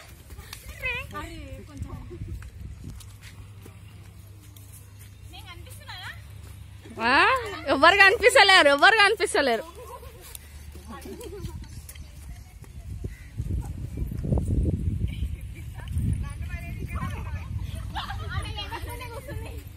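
Children shout and call out loudly nearby, outdoors.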